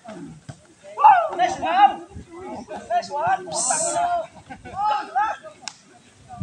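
Children and young people shout and cheer outdoors.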